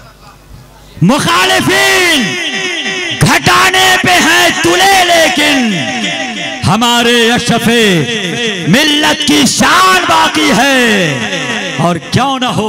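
A man chants loudly into a microphone through loudspeakers, echoing.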